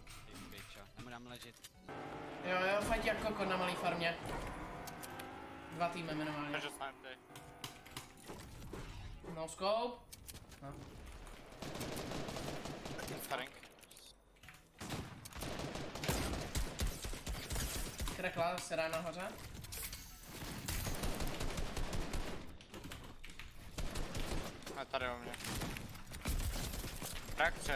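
Gunshots and building clatter ring out from a video game.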